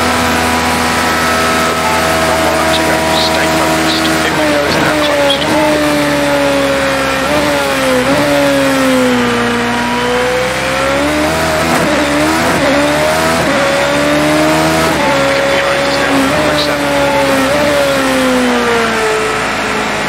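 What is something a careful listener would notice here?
A racing car engine screams at high revs, dropping in pitch on each braking and rising through the gears.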